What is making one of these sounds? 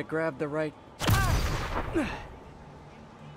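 A loud burst whooshes out in a puff of smoke.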